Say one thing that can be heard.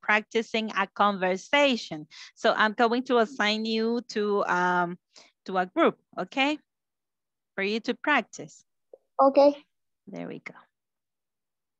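A woman speaks with animation through a headset microphone over an online call.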